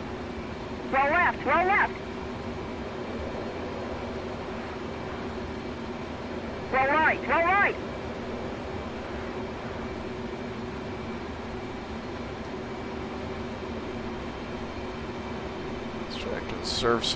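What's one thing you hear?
A jet engine drones steadily.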